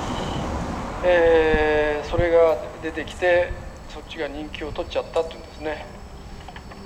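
A man sings into a microphone in long, held notes.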